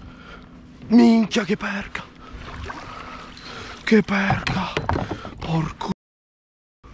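A fish splashes in the water close by.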